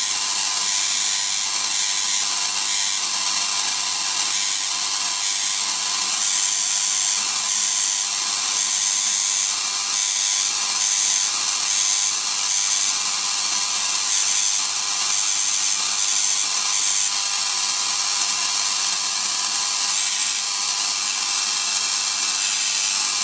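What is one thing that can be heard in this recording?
Electric sparks buzz and crackle steadily in bursts.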